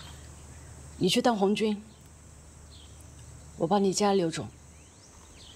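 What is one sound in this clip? A young woman speaks softly and earnestly nearby.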